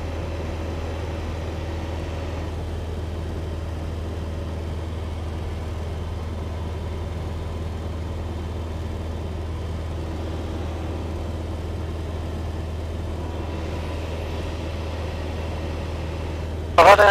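An aircraft engine drones steadily from inside the cockpit.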